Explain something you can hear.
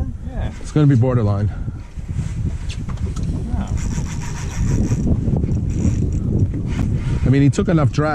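Water laps gently against the side of a boat.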